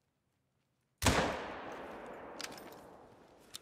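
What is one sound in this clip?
A rifle shot cracks and echoes away.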